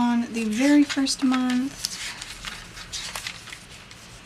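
Paper pages rustle and flip.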